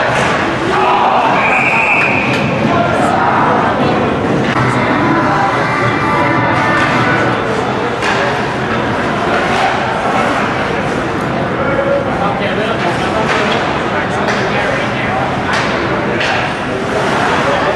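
Skates scrape and swish across ice.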